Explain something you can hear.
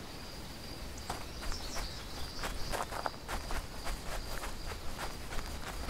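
Footsteps crunch on grass and dirt outdoors.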